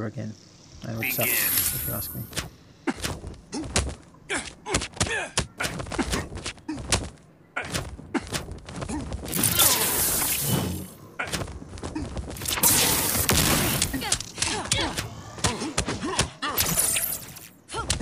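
Punches and impacts thud and crack in quick succession.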